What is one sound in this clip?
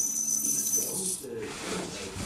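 A sprayer hisses as it sprays liquid.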